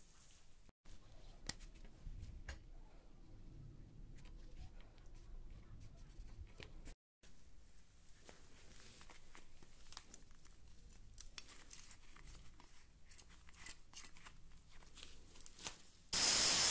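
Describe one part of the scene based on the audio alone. Metal parts click and clink together.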